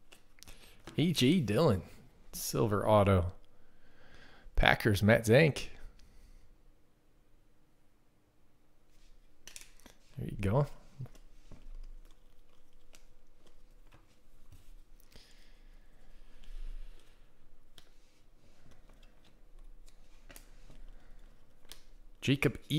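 Trading cards rustle and click as hands shuffle through them.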